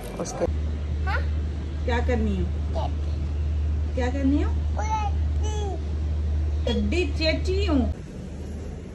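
A young girl speaks with animation nearby.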